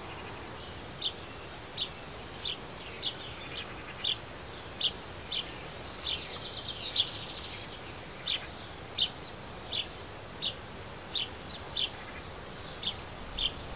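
A small bird chirps in short, sharp, repeated calls nearby.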